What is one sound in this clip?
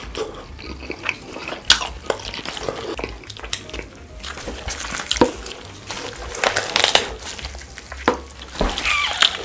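Crisp skin crackles as meat is pulled apart.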